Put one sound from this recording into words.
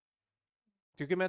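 A man speaks clearly into a close microphone.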